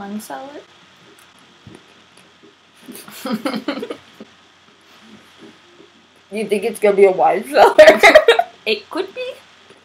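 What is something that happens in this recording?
A young woman talks with animation, close to a computer microphone.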